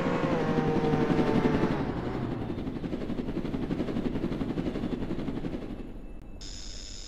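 A car engine roars and then idles down.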